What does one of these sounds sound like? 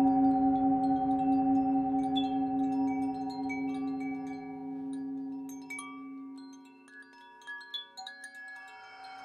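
A singing bowl rings with a deep, steady humming tone that slowly fades.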